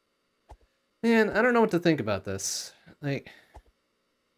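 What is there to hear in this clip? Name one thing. A man speaks close to a microphone with animation.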